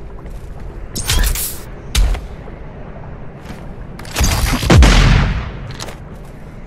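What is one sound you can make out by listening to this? A heavy gun fires loud, booming blasts.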